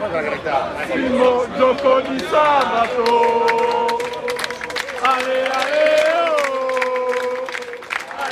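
A crowd of men chants loudly in unison.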